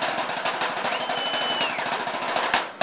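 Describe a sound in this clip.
A man blows a whistle.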